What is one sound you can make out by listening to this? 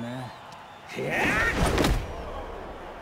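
A heavy kick is blocked with a loud, sudden thud.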